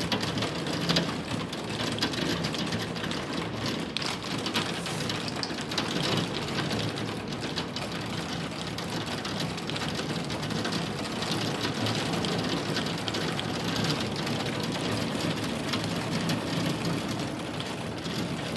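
Heavy rain pours down and patters steadily against a window pane.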